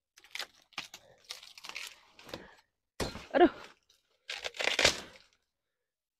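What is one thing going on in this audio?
Leaves rustle and stalks snap as a plant is pulled.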